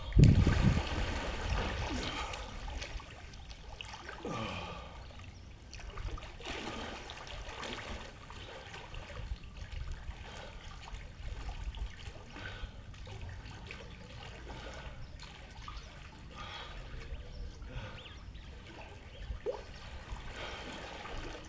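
Water splashes and sloshes as a man swims.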